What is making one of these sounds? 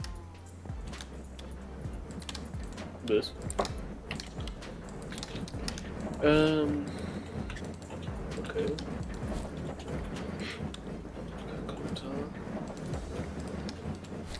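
Soft clicks sound as items are moved around.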